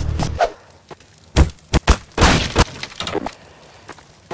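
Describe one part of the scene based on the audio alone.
Objects clatter and thud as they are knocked about.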